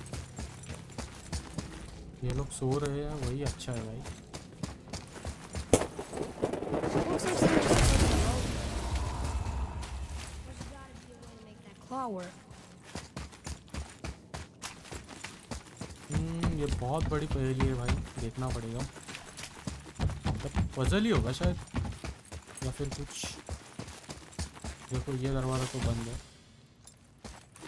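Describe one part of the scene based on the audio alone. Footsteps crunch on stone and gravel.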